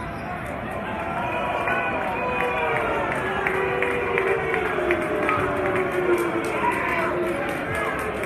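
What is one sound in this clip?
Young women cheerleaders chant together loudly.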